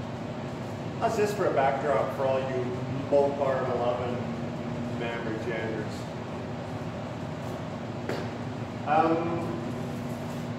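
A man speaks calmly nearby in an echoing room.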